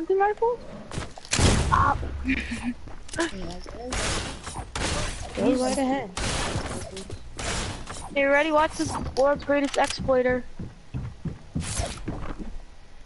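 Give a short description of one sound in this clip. Wooden walls snap into place with quick, sharp clunks.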